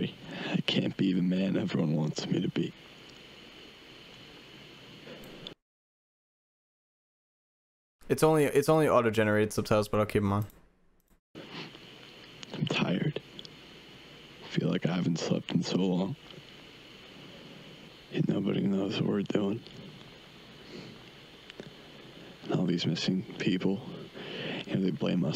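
A young man talks calmly into a close microphone, in short bursts.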